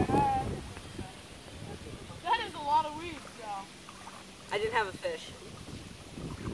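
Water splashes as a fish thrashes at the surface.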